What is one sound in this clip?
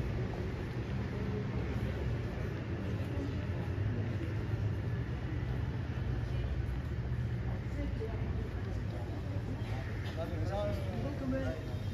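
Footsteps tap on stone paving as people walk past.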